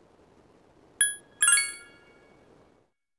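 Bright electronic menu chimes ring out.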